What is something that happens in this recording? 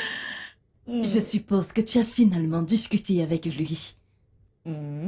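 An older woman speaks calmly close by.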